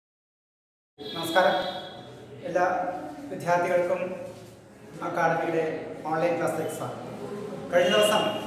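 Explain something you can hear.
A middle-aged man speaks calmly and clearly, close to the microphone.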